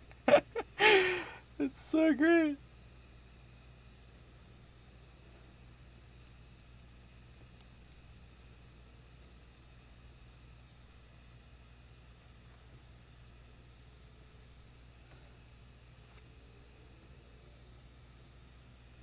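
A crochet hook works through yarn.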